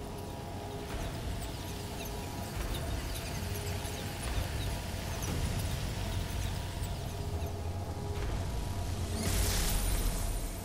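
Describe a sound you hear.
Game music plays with a deep, rumbling drone.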